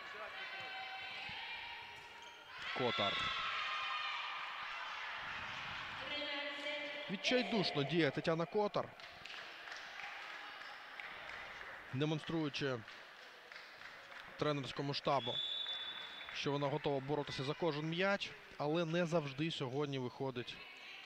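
A volleyball is hit with sharp slaps during a rally.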